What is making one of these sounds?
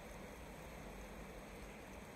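Water pours steadily down a waterfall.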